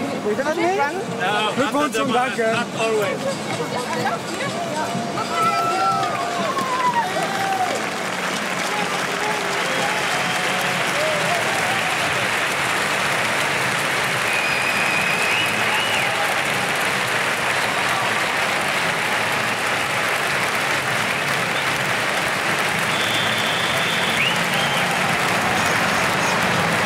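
A large crowd cheers and roars in a big open stadium.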